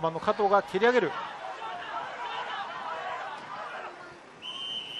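A crowd cheers and shouts in an open stadium.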